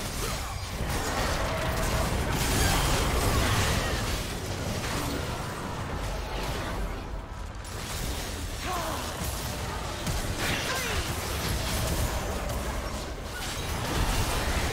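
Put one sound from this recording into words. Game weapons clash and strike in quick hits.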